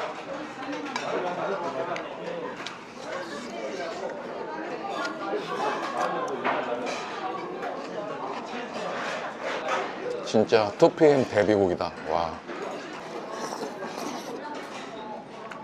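Chopsticks clink against a metal bowl.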